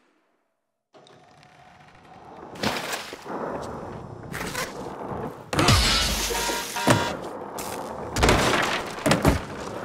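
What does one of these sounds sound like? Skateboard wheels roll and clatter on concrete.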